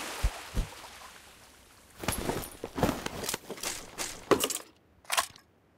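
Water splashes as someone swims.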